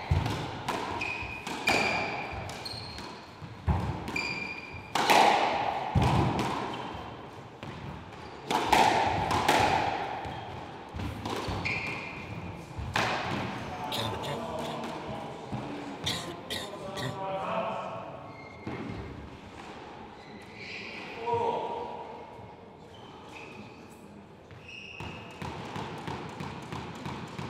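Rubber-soled shoes squeak on a wooden floor.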